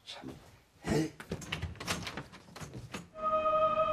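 A door closes.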